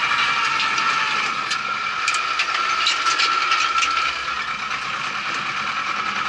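A cultivator rattles and clanks over the soil.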